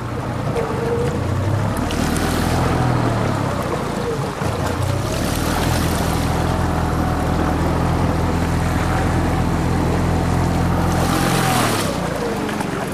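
A small outboard motor hums steadily.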